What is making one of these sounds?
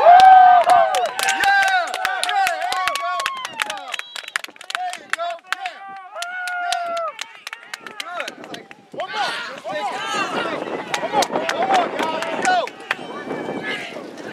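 Teenage boys shout and cheer outdoors.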